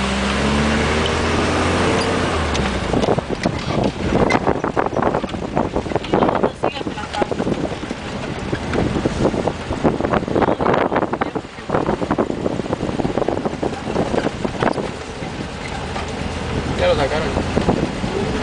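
A vehicle's engine rumbles steadily from inside the cab.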